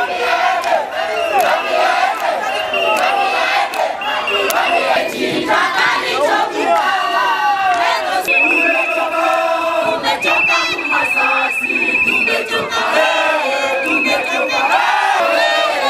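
A large crowd of men and women sings and chants loudly outdoors.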